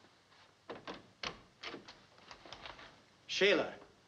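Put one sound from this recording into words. A door opens and clicks.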